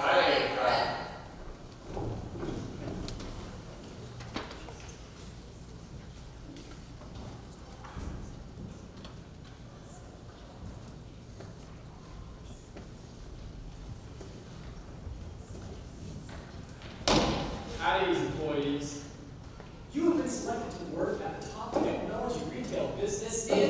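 Young teenagers speak loudly, heard from a distance.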